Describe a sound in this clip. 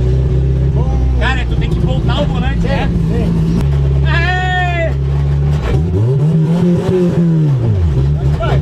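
A young man talks with animation close by over the engine.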